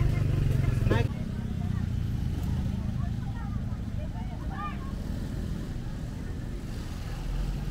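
Motorbike engines rumble past.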